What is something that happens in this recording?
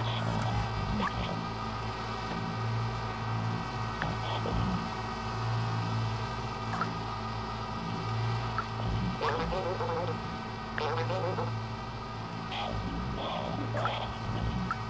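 Electronic music with a low, pulsing beat plays steadily.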